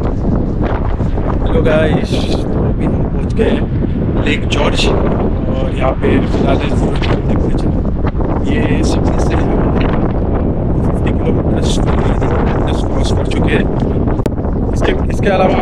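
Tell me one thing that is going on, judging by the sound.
A man talks close to a microphone in the wind.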